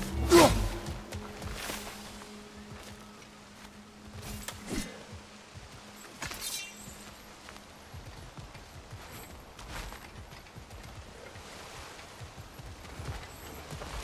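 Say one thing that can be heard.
Heavy footsteps walk on stone.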